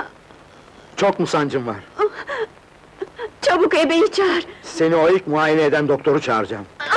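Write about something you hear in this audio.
A young woman cries out in distress.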